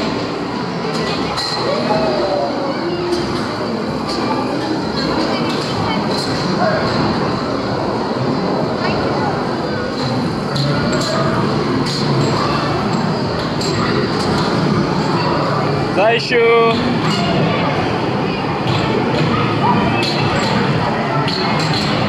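Electronic music plays from machines.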